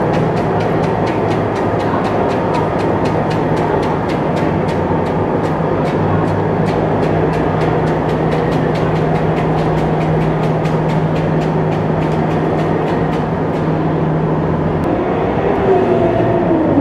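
The diesel engine of a tracked amphibious assault vehicle rumbles as it rolls forward, echoing in a large steel hall.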